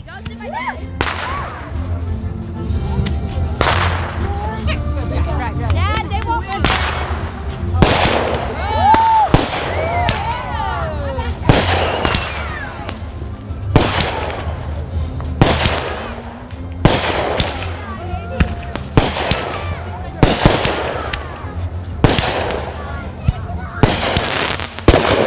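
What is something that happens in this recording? Fireworks burst with loud booms, again and again.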